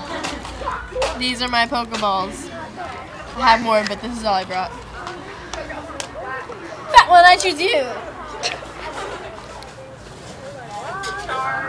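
A teenage girl talks casually close by.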